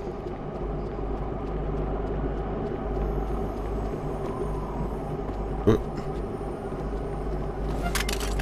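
A car engine runs.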